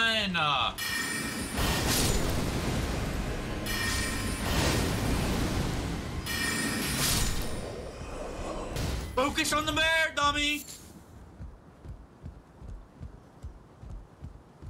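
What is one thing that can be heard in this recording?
A young man talks into a microphone, close up.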